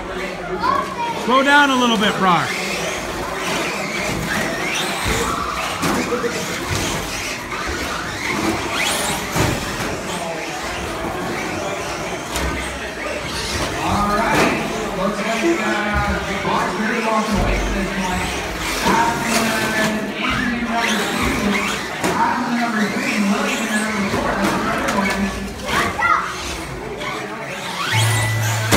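Electric radio-controlled short course trucks whine as they race over carpet.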